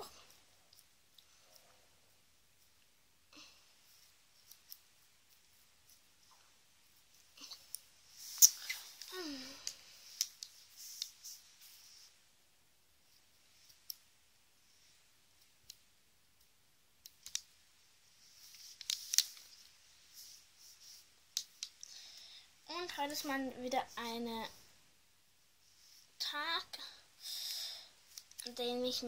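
Scissors snip through doll hair.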